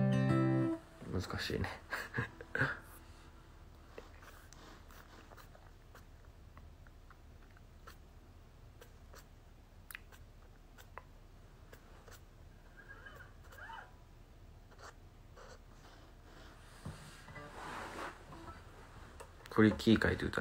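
An acoustic guitar is strummed softly.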